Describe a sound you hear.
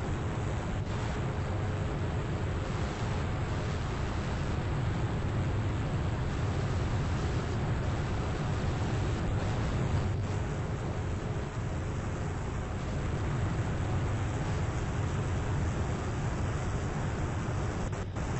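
A helicopter's rotors whir and drone steadily.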